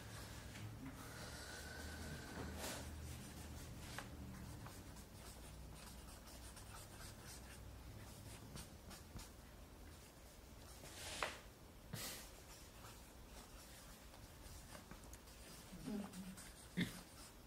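A marker squeaks across paper.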